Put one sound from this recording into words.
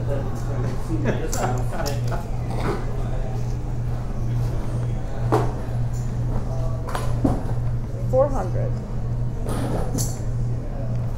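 Poker chips click and clatter on a table.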